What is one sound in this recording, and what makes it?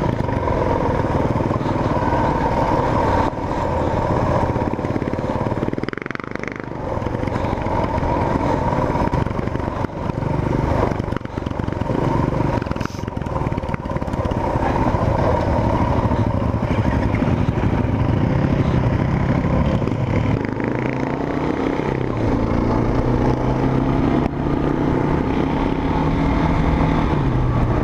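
A motorcycle engine drones steadily up close, rising and falling in pitch.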